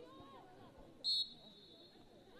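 A referee's whistle blows once, short and sharp.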